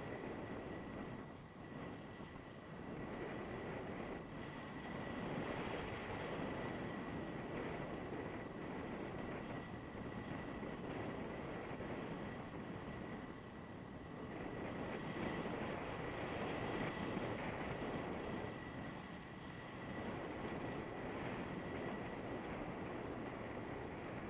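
Strong wind rushes and buffets past a microphone high in the open air.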